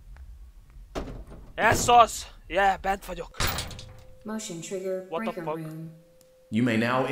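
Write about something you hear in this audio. A young man shouts and talks excitedly into a close microphone.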